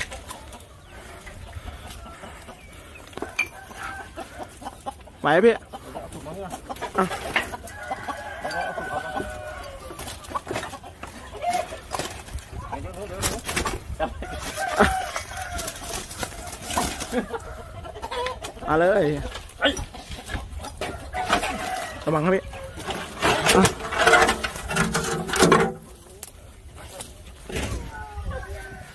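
A man talks with animation nearby, outdoors.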